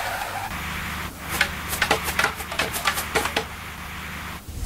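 Wooden planks clatter as they drop into place.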